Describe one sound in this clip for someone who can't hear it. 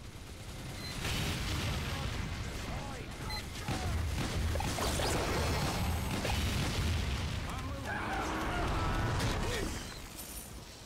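A flamethrower roars in bursts of fire.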